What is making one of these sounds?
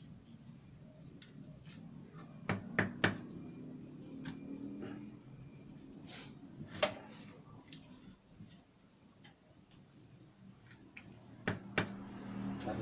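A cleaver chops on a wooden board in sharp knocks.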